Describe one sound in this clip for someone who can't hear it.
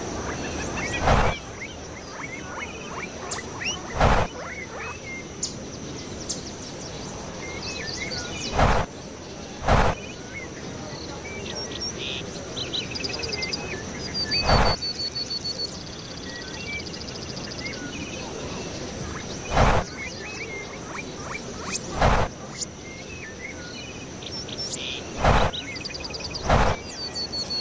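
Wooden fence posts knock into the ground one after another.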